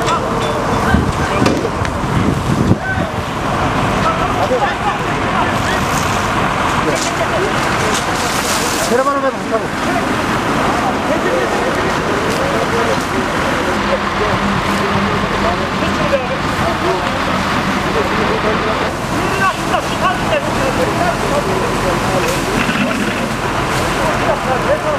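Men shout and talk nearby over the noise.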